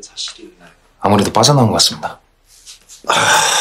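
A middle-aged man speaks wearily, close by.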